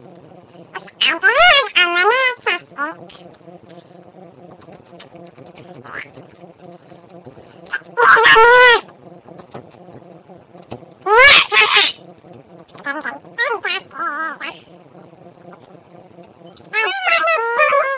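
Young girls talk and squeal playfully close to a microphone, in bursts.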